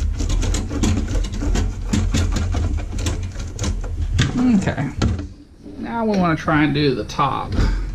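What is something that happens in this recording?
A metal lid clatters and clicks as it is opened and closed.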